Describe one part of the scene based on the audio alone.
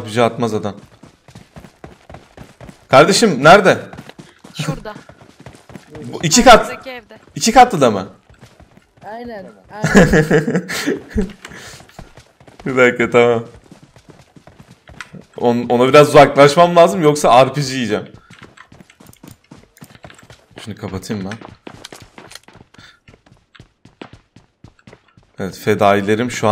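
A young man talks with animation into a close microphone, in bursts with pauses.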